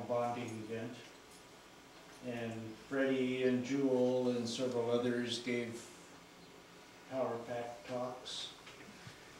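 A man speaks calmly in short bursts with long pauses.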